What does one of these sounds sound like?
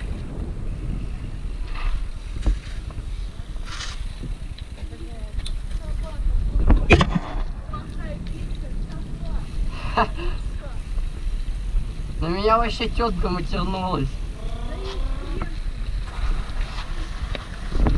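Bicycle tyres roll over pavement.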